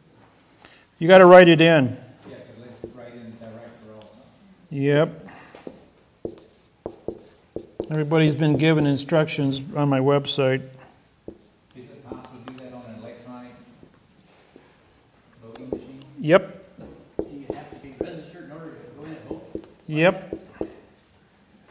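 A man speaks slowly and clearly.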